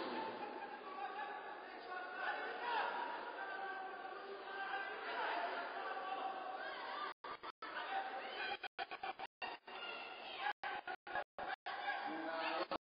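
A crowd of spectators chatters and calls out in a large hall.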